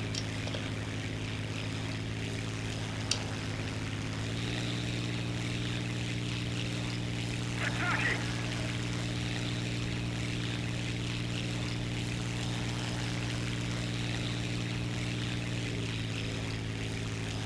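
A propeller plane's engine drones steadily, rising slightly in pitch partway through.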